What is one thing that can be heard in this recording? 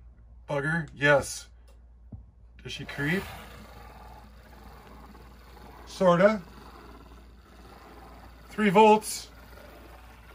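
A model locomotive whistle sounds in short, wavering toots.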